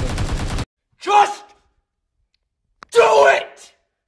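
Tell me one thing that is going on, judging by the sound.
A man shouts loudly and excitedly, close by.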